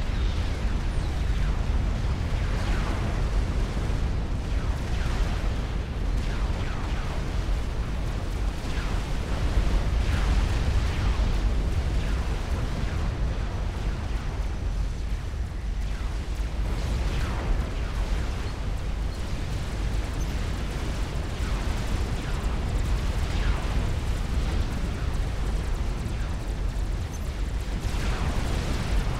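Explosions boom and rumble in a constant battle.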